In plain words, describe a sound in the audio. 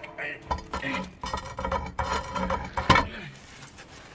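A heavy cast-iron manhole cover scrapes across asphalt.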